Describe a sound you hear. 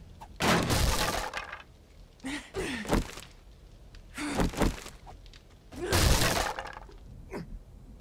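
Footsteps clunk on a wooden ladder as a character climbs.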